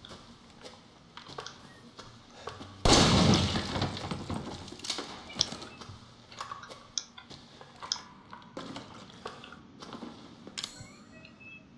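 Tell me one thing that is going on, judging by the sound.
Soft menu clicks sound as items are selected.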